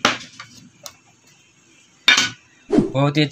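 A small tin box is handled and opened with a soft click.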